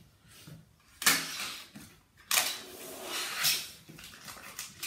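A plastic sheet rustles and scrapes as it is handled.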